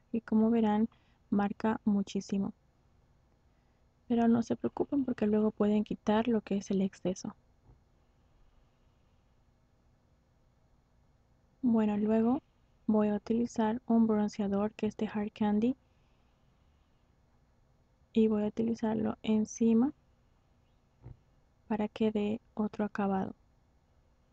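A young woman speaks calmly into a close microphone, in short bursts with pauses.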